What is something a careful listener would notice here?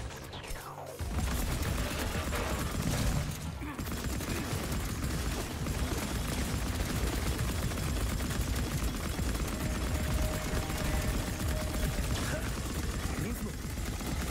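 A rapid-fire gun shoots in loud bursts.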